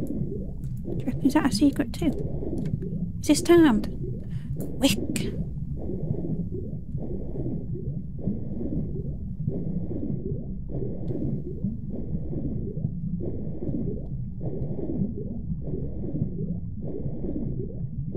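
Muffled underwater swimming strokes swish in a steady rhythm.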